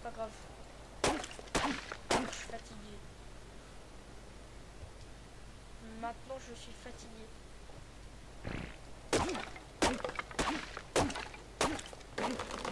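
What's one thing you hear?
A hatchet chops into a tree trunk with sharp knocks.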